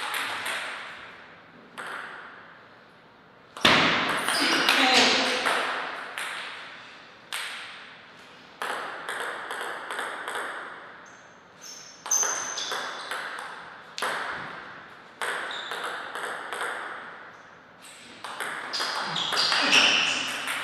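A table tennis ball clicks back and forth between paddles and table in a rally, echoing in a large hall.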